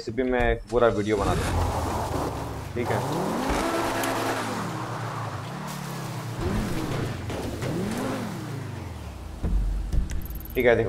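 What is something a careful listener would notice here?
A car engine revs and roars.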